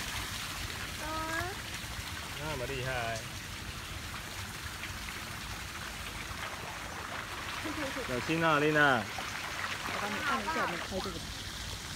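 A young child calls out in a high voice.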